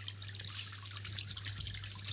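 A hand picks up a handheld microphone with a soft knock and rustle.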